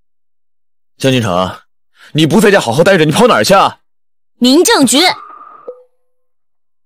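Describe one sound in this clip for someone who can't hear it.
A young man talks tensely on a phone, close by.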